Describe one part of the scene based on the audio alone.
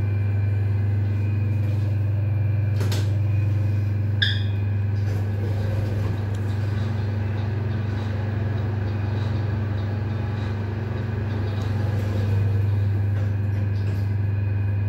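An elevator hums steadily.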